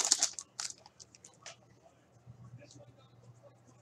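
Trading cards rustle and flick as hands shuffle through them.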